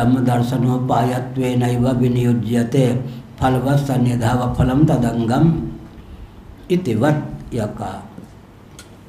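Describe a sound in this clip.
An elderly man chants in a steady, melodic voice through a microphone.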